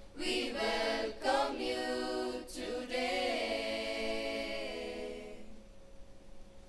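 A choir of young men and women sings together through microphones.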